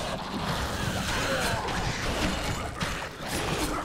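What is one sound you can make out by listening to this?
A sword slashes and strikes creatures in a fight.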